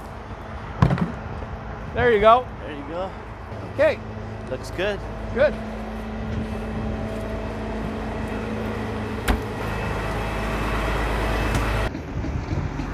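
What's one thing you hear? A heavy truck engine idles with a low rumble.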